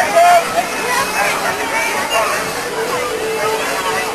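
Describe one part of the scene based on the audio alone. Children shout and squeal on a merry-go-round.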